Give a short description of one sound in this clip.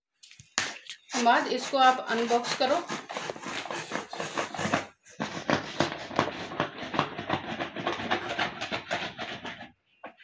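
A pen scrapes and tears through packing tape on a cardboard box.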